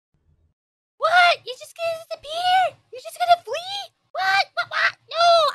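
A young woman speaks loudly and with animation into a close microphone.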